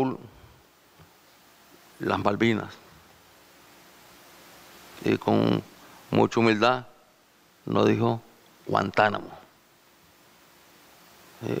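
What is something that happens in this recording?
A middle-aged man speaks into a microphone in short, emphatic phrases with pauses between them.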